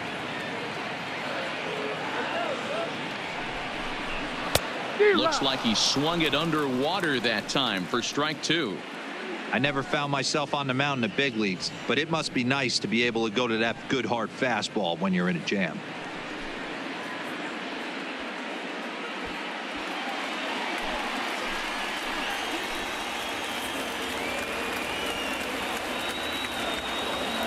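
A large crowd murmurs steadily in an open stadium.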